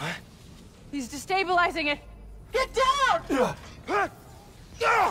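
A young woman speaks urgently.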